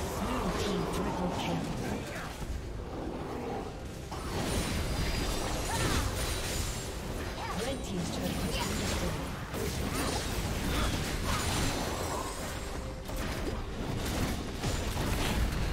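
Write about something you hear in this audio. Spell blasts and clashing weapons crackle and boom in a fast fantasy game battle.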